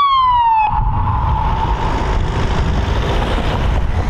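A police siren wails close by and then falls away.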